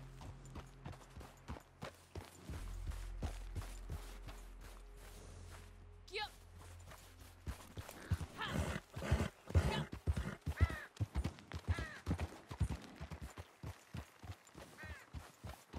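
A horse's hooves clop slowly on snowy ground.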